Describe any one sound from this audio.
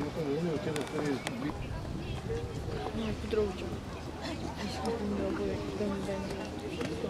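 A horse canters with dull hoofbeats on soft sand.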